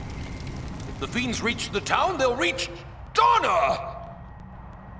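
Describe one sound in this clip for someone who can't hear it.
A man speaks in a deep, menacing voice.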